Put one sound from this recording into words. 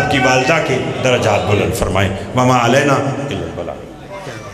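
A man recites with passion through a microphone.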